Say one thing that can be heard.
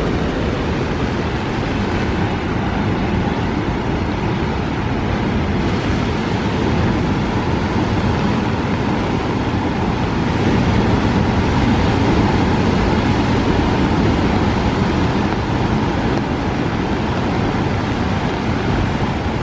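Heavy waves crash and roar against rocks.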